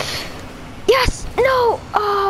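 A ball is struck with a hollow thump.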